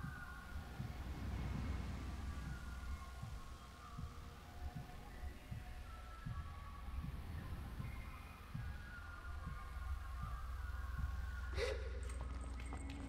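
Footsteps thud at a steady running pace.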